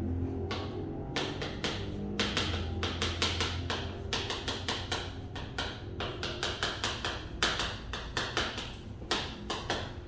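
Chalk taps and scrapes on a board.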